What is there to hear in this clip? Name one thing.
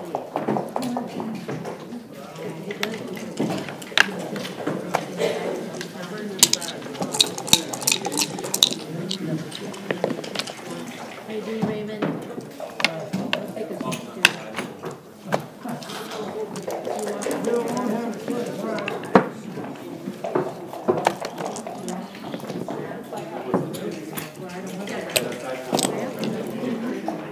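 Plastic game pieces click and slide on a wooden board.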